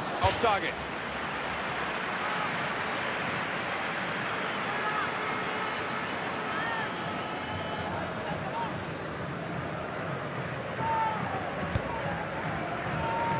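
A large stadium crowd roars steadily all around.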